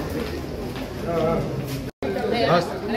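A man talks on a mobile phone nearby.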